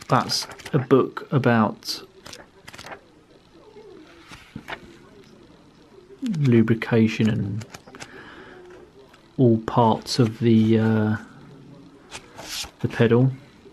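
Paper pages rustle and flutter as they are flipped.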